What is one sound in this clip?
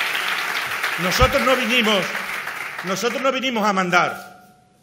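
A middle-aged man speaks forcefully into a microphone over loudspeakers.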